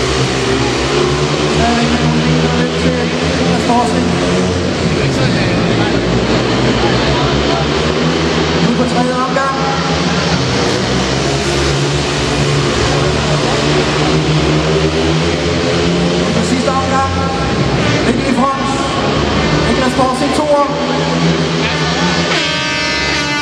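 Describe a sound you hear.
Motorcycle engines roar loudly as bikes race around a dirt track.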